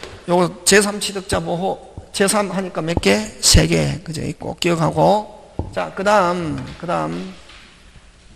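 A man lectures with animation through a microphone.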